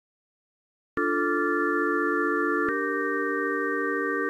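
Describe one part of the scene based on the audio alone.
A synthesizer plays sustained chords.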